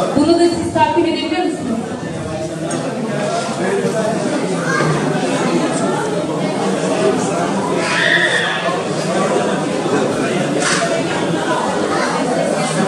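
A woman speaks into a microphone over a loudspeaker in a large echoing hall.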